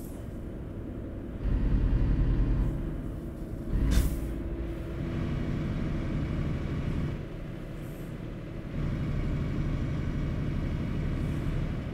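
A truck engine hums with a low, steady drone.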